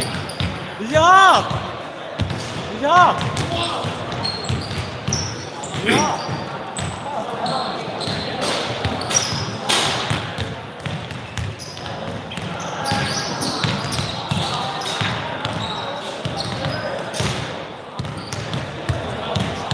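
Basketballs bounce and thud on a wooden floor in a large echoing hall.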